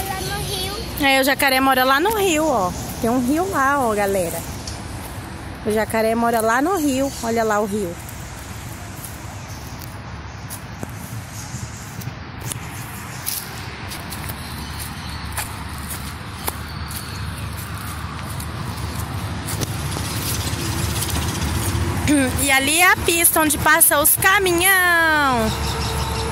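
A young child speaks with animation close by.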